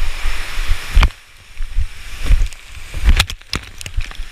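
Water splashes and crashes hard against a kayak.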